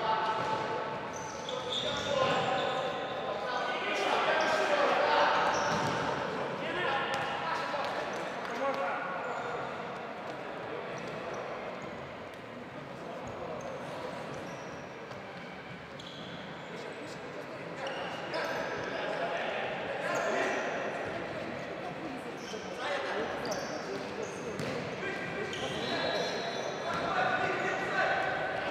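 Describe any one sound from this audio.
Players' shoes squeak on a hard indoor floor in a large echoing hall.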